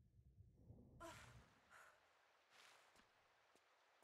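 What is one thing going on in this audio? Water splashes as a swimmer surfaces.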